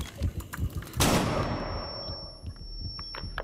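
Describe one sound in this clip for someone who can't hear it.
An explosion blasts nearby and rumbles away.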